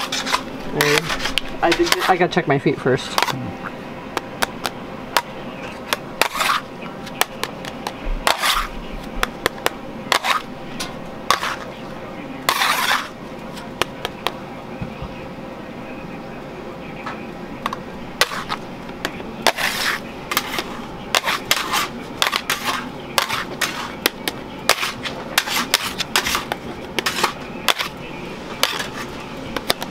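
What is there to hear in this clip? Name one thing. A metal scraper scrapes and taps against a stone slab.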